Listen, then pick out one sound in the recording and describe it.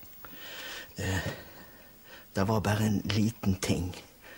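A middle-aged man speaks quietly and sadly, close by.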